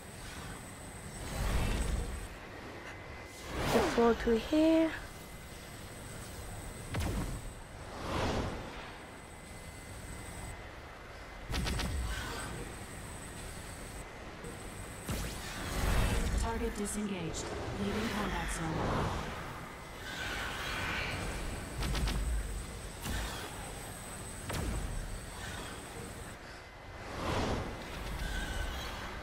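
Laser beams fire with loud whooshing blasts, again and again.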